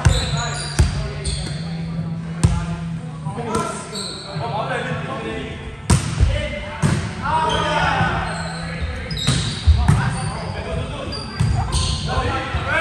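A volleyball is struck with sharp slaps that echo in a large hall.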